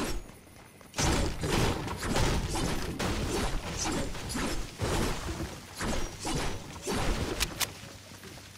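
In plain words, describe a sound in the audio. A pickaxe chops repeatedly into a tree.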